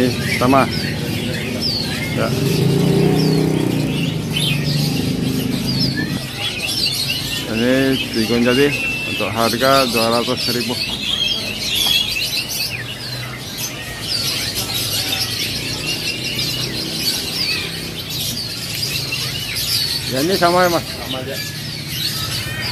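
Caged birds chirp and twitter in quick, high bursts.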